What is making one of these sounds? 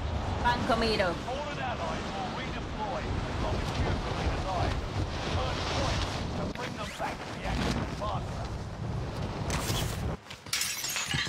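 Wind rushes loudly during a fall through the air.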